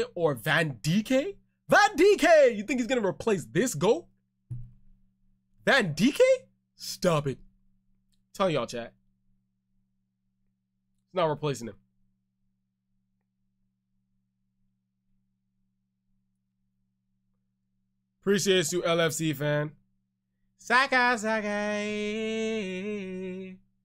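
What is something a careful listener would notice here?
A young man talks with animation close to a microphone, with pauses.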